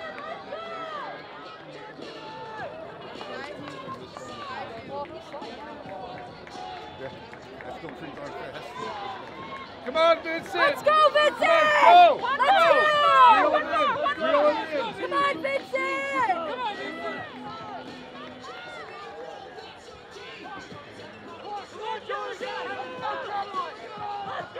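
Nearby spectators, men and women, chatter and call out.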